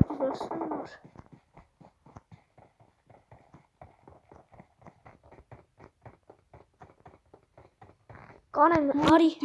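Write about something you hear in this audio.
Footsteps run quickly and steadily over hard ground.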